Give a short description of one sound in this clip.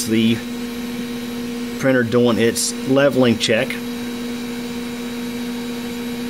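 A 3D printer's fan hums steadily.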